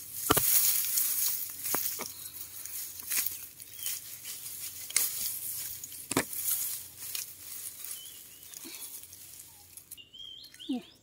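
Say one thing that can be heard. Dry grass rustles and crackles as hands push through a lemongrass clump.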